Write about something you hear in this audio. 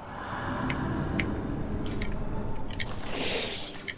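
Footsteps creak on wooden boards.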